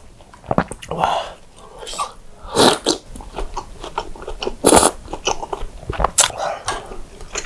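A man chews and slurps food close to a microphone.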